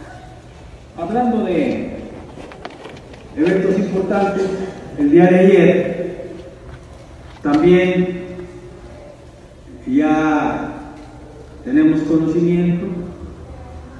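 A man speaks loudly into a microphone in bursts with long pauses, heard through a loudspeaker in an echoing hall.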